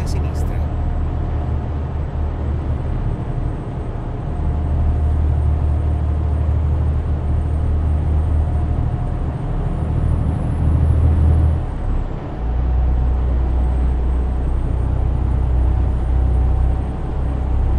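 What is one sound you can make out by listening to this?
A truck engine drones steadily as the truck drives along a highway.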